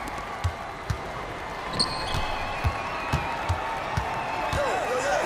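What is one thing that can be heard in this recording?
A basketball bounces steadily on a hard court.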